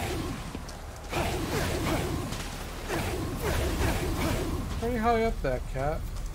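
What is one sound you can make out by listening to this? Magical energy blasts crackle and whoosh in quick bursts.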